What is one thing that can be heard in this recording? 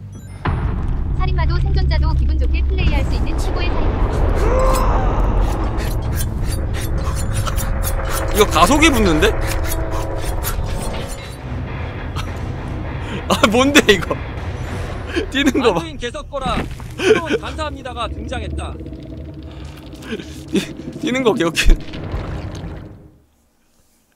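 A man laughs loudly and talks with animation close to a microphone.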